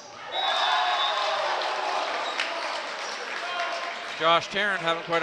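Young men cheer and shout loudly in an echoing gym.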